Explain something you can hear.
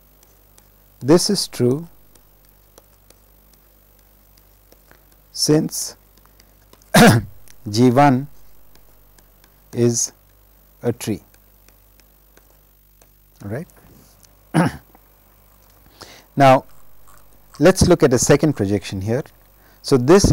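A man speaks calmly and slowly into a close microphone, with long pauses.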